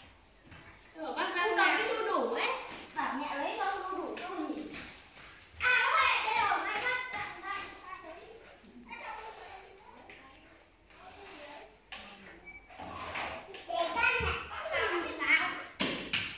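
A parrot chatters and squawks close by.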